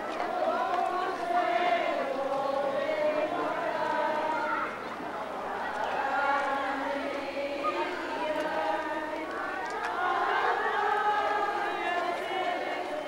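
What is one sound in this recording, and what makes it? A crowd of men and women sings a slow hymn together outdoors.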